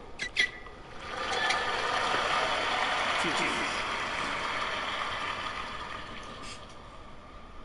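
A crowd applauds and cheers in a large stadium.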